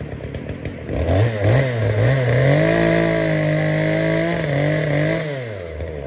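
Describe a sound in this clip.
A power saw motor whines loudly as it cuts, its pitch rising and falling.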